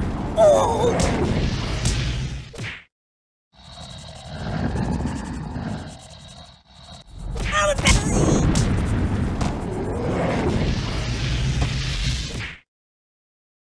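Explosions boom and rumble in quick succession.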